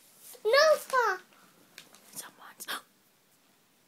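A young child speaks in a high, sing-song voice close by.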